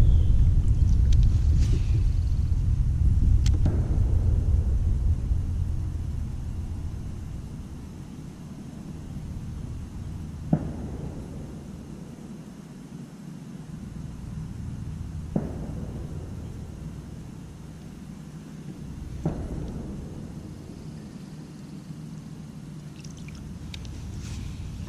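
Wind rumbles across open water, strongest at first and then easing.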